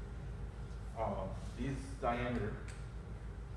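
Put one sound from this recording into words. A man speaks briefly and calmly, slightly muffled.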